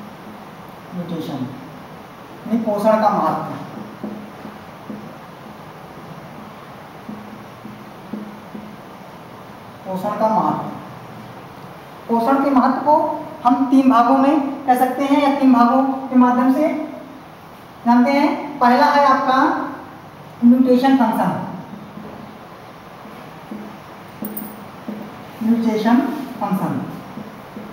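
A young man speaks calmly nearby in a small echoing room.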